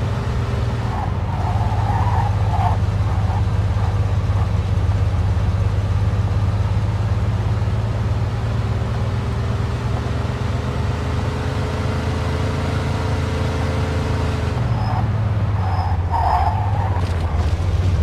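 Tyres screech on the road as a car turns sharply.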